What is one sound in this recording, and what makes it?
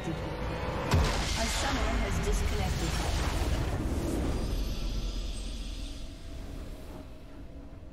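A triumphant victory fanfare swells and slowly fades.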